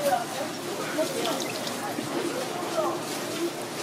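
A wet fish slaps against a board.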